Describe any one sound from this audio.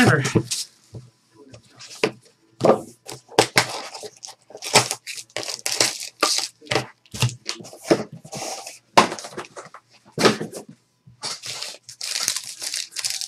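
Foil wrappers crinkle and rustle as packs are torn open.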